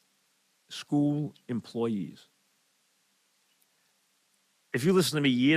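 An elderly man speaks calmly and clearly into a close microphone.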